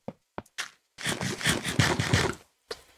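A block breaks apart with a short crumbling burst.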